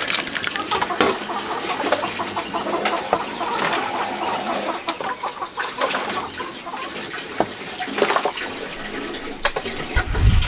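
A ladle scrapes and clinks against a metal pot.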